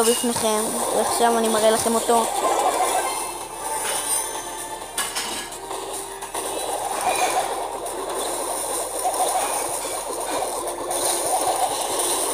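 Electronic game shots and blasts sound in quick bursts.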